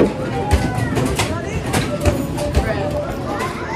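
Basketballs thud against an arcade machine's backboard.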